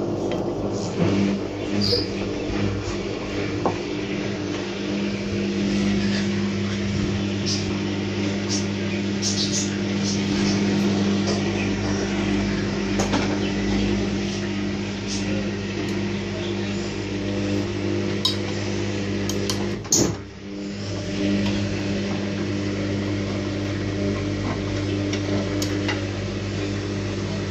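A front-loading washing machine hums as its drum turns.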